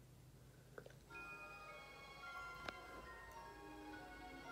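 Soft orchestral music begins playing from a television.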